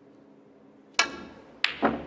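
A cue strikes a snooker ball with a sharp tap.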